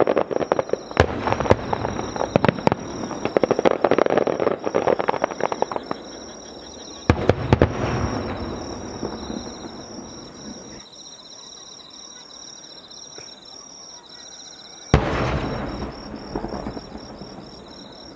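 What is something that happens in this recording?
Fireworks boom loudly outdoors, with echoes rolling away.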